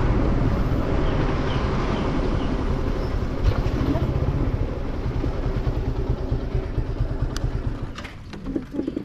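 A motorcycle engine rumbles steadily while riding, then quiets.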